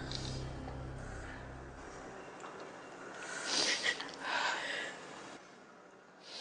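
A young woman sobs and sniffles close by.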